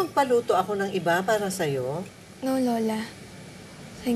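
An older woman speaks with emotion, close by.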